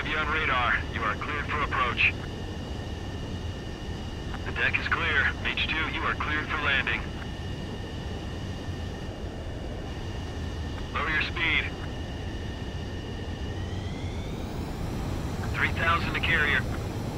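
A twin-engine jet fighter roars in flight.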